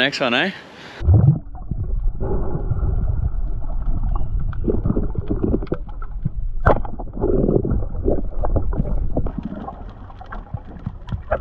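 Water rumbles and gurgles, muffled, underwater.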